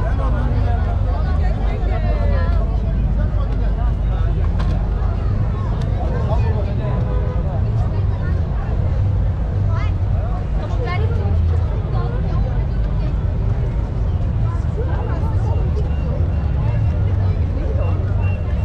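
A crowd of people chatters all around, outdoors.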